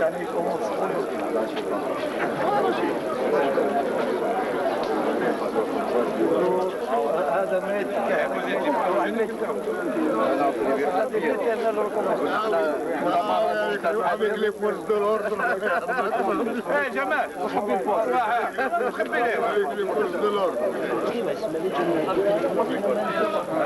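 Several men chatter and murmur nearby.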